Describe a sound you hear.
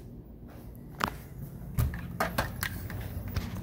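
Window blind slats clatter and clack.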